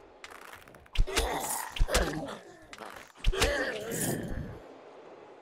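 Arrows whoosh through the air.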